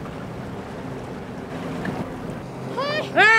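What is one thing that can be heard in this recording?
A boat engine hums at idle.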